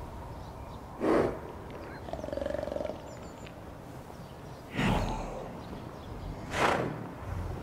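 Heavy thuds sound as a large creature moves about on stone.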